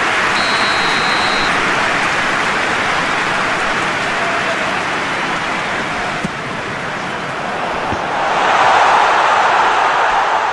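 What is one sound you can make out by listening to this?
A large crowd roars steadily in a stadium and swells louder near the end.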